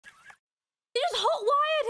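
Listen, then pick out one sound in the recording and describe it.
A young woman speaks with animation into a nearby microphone.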